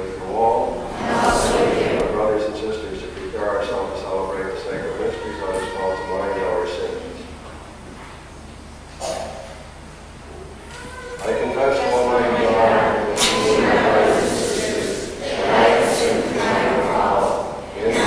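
An elderly man speaks slowly through a microphone in an echoing hall.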